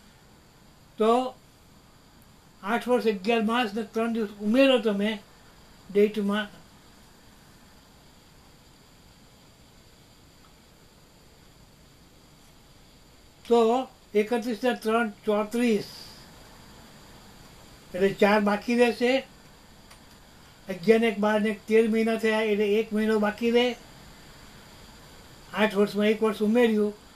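An elderly man speaks close by in short bursts, pausing between phrases.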